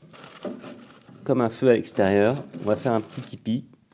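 Crumpled newspaper rustles as it is pushed into a cast-iron wood stove.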